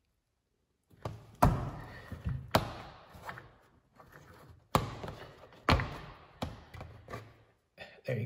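Plastic switches click sharply as they are pressed.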